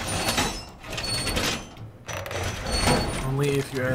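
A heavy metal panel clanks and slides into place.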